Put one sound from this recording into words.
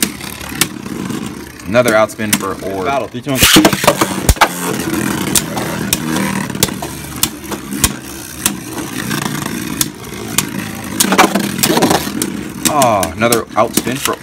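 Spinning tops clash and click sharply against each other.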